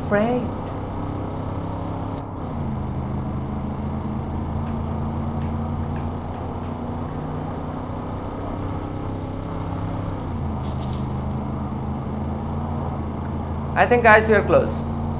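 Tyres rumble over a gravel road.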